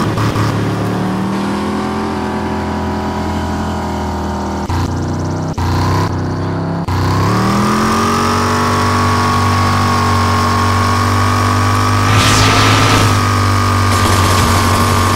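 A car engine roars steadily, dropping briefly and then revving back up.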